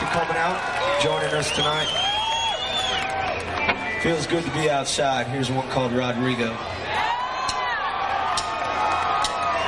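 A rock band plays loudly with electric guitars and drums.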